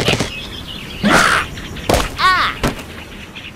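A game bird squawks as it is launched.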